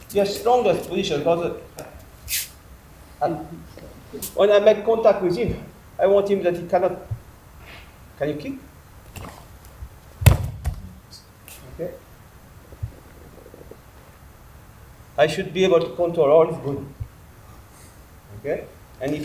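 A middle-aged man speaks calmly nearby, explaining.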